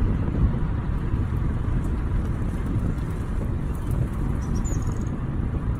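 A car drives along a paved road, with a steady low rumble of tyres and engine.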